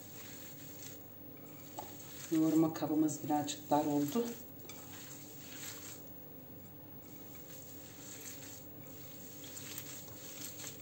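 Hands squeeze and knead soft wet minced meat with quiet squishing sounds.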